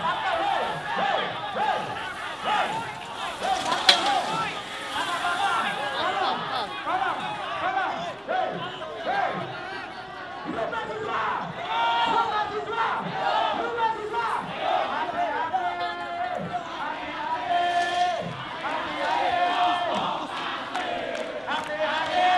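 A large crowd of protesters shouts and talks outdoors.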